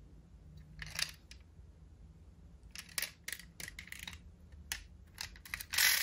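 A toy car's tiny door clicks open.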